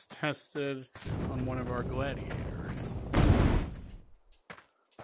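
A fireball whooshes and crackles.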